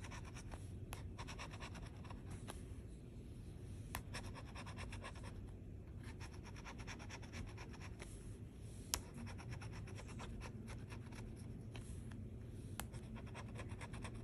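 A metal scraper rasps rapidly across a scratch-off card.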